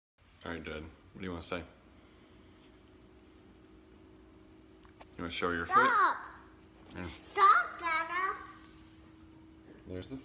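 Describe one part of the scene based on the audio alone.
A young child talks close by.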